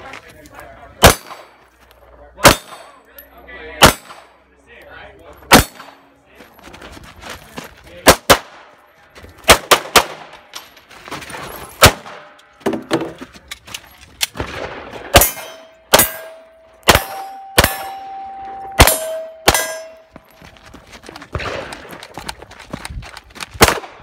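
A pistol fires sharp, loud shots outdoors, one after another.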